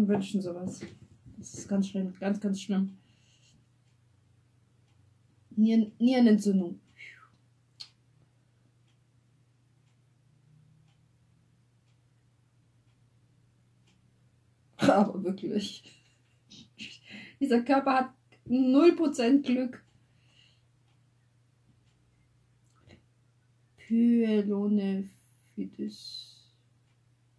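A woman speaks close to a microphone, in short bursts with pauses.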